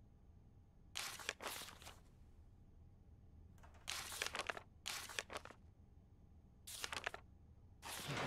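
Paper pages rustle as they turn.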